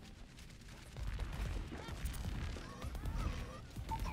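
A video game weapon fires with rapid low thumps.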